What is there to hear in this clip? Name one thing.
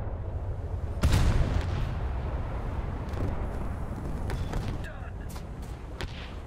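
Heavy guns fire with deep booming blasts.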